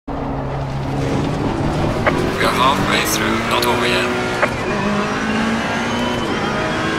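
A race car engine drones and rises in pitch, dropping as it shifts gears.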